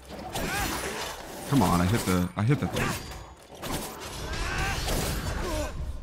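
Metal clangs as swords strike.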